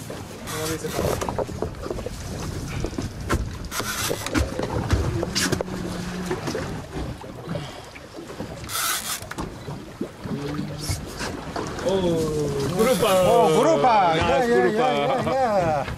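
Waves slap against a boat's hull.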